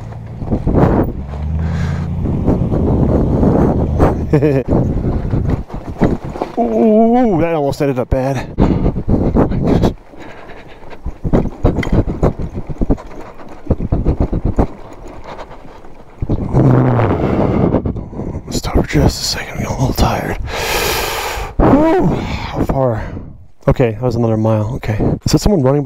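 A man talks calmly into a helmet microphone, close by.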